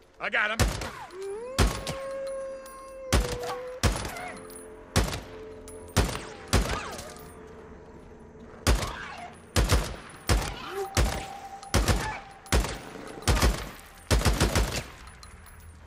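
Gunshots crack in sharp single bursts.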